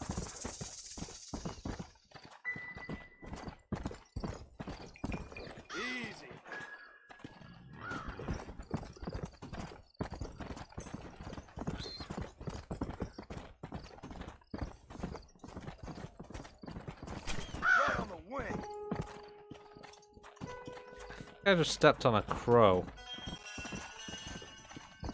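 A horse gallops steadily over dry ground, its hooves thudding quickly.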